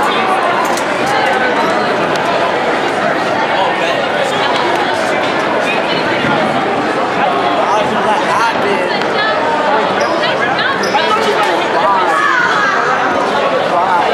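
Young men talk excitedly close by.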